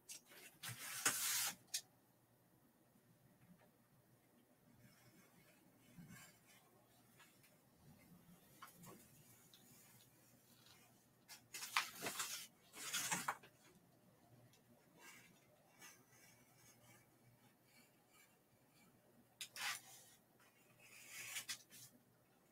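Paper rustles and crinkles under hands.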